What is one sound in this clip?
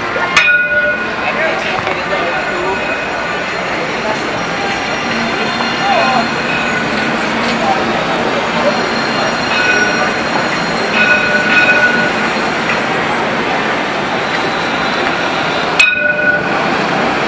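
Street traffic and city noise fill the air outdoors.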